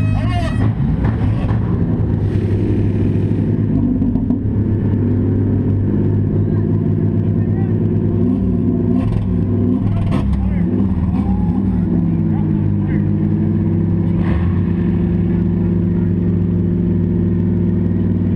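A car engine roars and revs loudly from inside the car.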